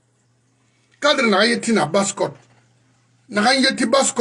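An older man speaks with animation, loud and close to a microphone.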